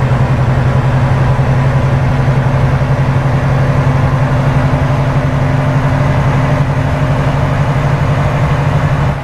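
A truck's diesel engine drones steadily from inside the cab.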